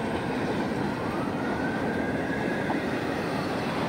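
Steel wheels squeal on the rails.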